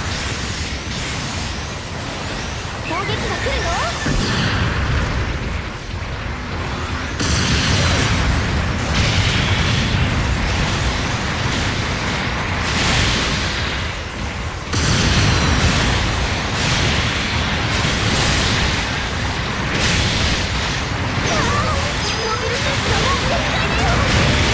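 Robot weapons fire beams and shots in rapid bursts.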